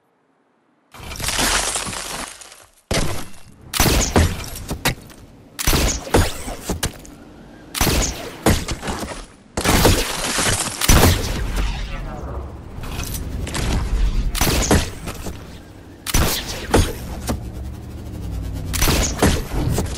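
Building pieces clatter and thud into place in quick bursts.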